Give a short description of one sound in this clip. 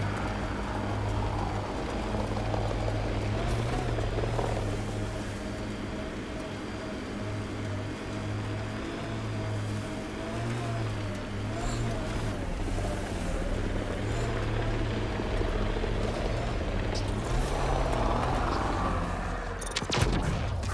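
Tyres rumble over sand and rock.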